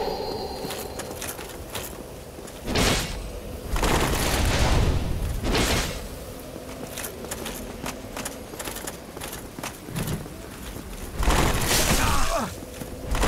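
Metal weapons swing and clash in combat.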